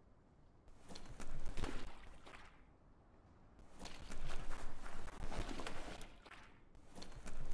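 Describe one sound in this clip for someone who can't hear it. Leaves and branches rustle as a small creature pushes through plants.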